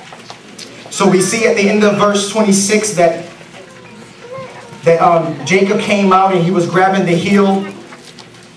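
A man speaks with feeling into a microphone, his voice carried over loudspeakers.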